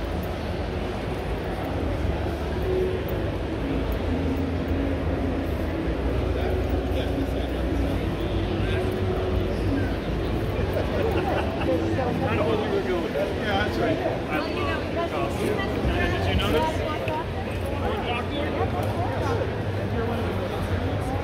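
A crowd murmurs steadily in a large echoing hall.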